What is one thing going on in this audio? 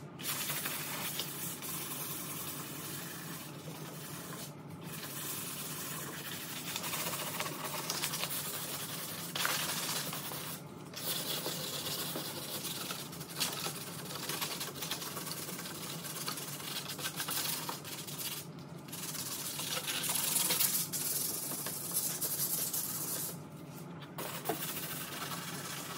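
Sandpaper rasps quickly back and forth across a hard surface.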